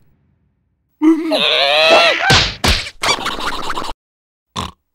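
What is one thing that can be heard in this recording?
A cartoon creature yelps and squeals in a high, squeaky voice.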